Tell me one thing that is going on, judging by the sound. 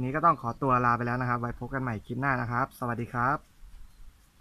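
A young man speaks close up, calmly and with animation.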